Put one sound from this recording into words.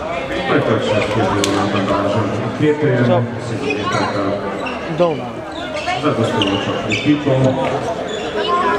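A ball bounces on a wooden floor in a large echoing hall.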